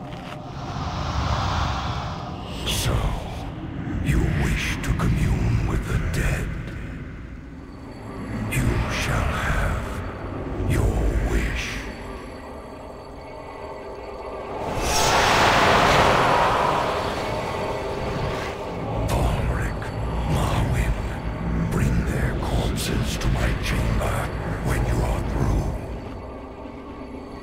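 Fighting in a game goes on with spell bursts and hits crackling and whooshing.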